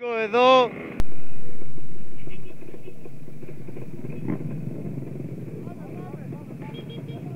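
A scooter engine hums steadily while riding along a road.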